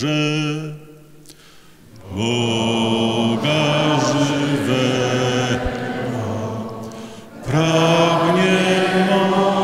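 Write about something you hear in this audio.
A man sings slowly into a microphone, holding long notes, in a large echoing hall.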